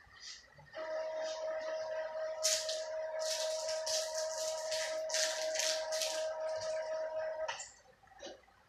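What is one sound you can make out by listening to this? A printer whirs and buzzes with a steady hum and rapid clicking.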